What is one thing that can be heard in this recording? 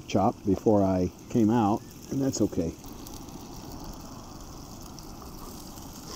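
Meat sizzles steadily in a hot pot.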